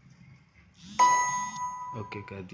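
A phone chimes once.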